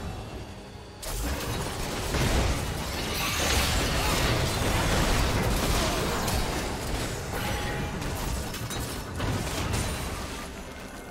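Magic spells blast and crackle in a fast fight between game characters.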